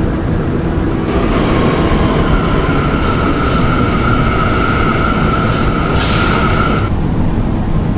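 Train brakes squeal as the train slows down.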